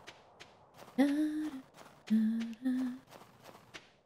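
A young woman speaks briefly and cheerfully into a microphone.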